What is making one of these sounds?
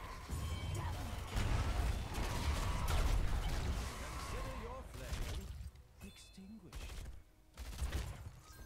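Magic spells burst and boom.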